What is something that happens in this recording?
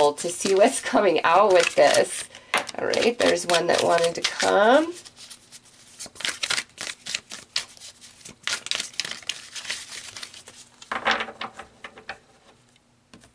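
Fingers tap and scratch lightly close by.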